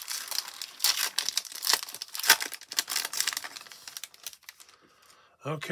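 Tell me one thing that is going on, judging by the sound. A foil wrapper crinkles and tears open close by.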